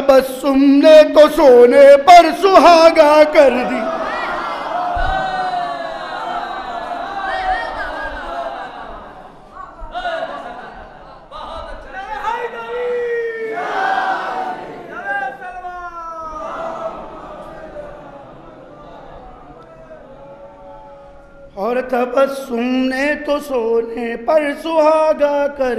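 A man recites with great passion into a microphone, his voice ringing through loudspeakers.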